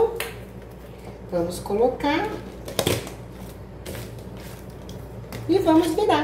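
Plastic wrap crinkles as it is pressed over a pan.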